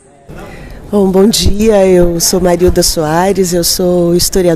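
A middle-aged woman speaks loudly and cheerfully into a close microphone.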